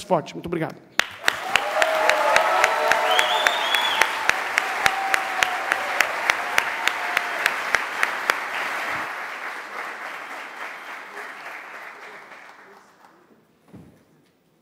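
A large crowd applauds in an echoing hall, slowly dying down.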